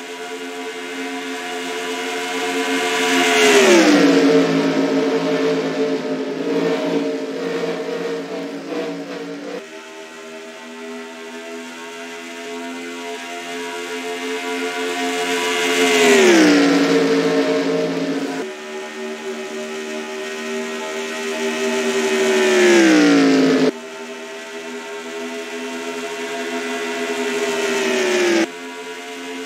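Several racing car engines drone steadily in the background.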